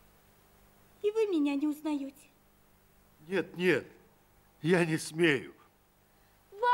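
A man speaks warmly, close by.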